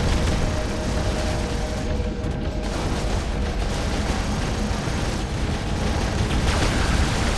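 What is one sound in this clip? Robot weapons fire in rapid bursts.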